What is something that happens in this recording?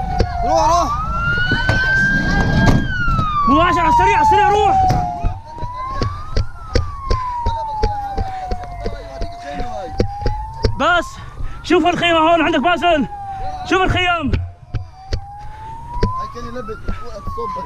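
A siren wails, slowly rising and falling.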